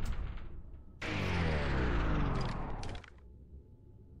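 A pistol clicks as it is drawn.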